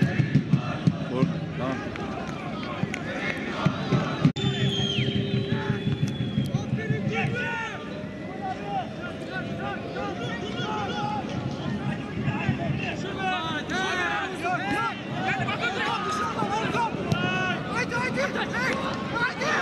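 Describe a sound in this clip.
Men shout to each other across an open field outdoors.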